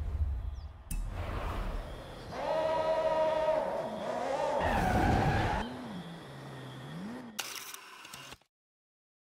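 A car engine revs up and idles with a deep hum.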